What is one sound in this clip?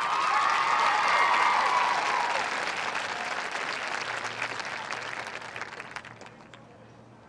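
A crowd applauds and cheers from the stands, then fades.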